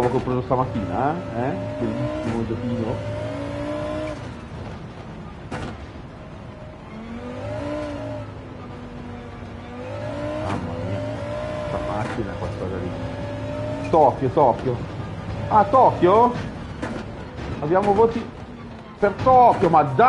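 A car engine revs and whines as gears change.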